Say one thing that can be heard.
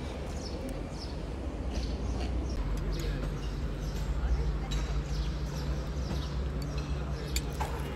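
Sparrows chirp nearby.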